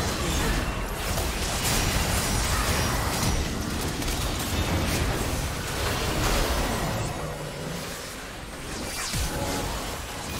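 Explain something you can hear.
Game spells and attacks burst and clash in a fast fight.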